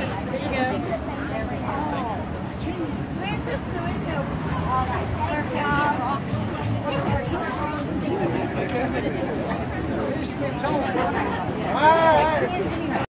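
Several people in a crowd chatter and talk over one another nearby.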